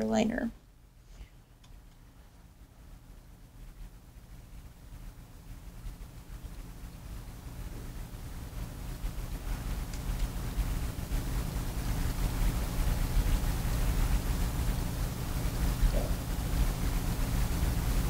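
A paintbrush softly brushes paint across a canvas.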